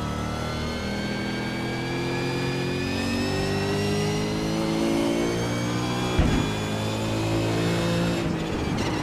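A racing car engine revs high and climbs steadily as the car accelerates.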